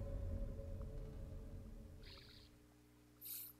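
Electricity crackles and buzzes with a low hum.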